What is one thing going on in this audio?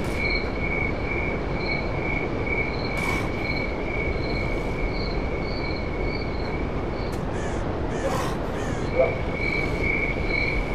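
Wind blows steadily through the trees outdoors.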